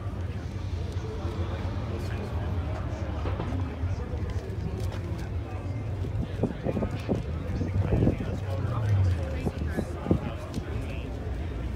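Men chat quietly at a distance.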